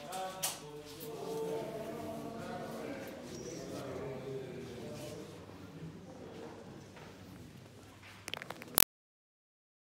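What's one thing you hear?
Men's voices chant a prayer in a large echoing hall.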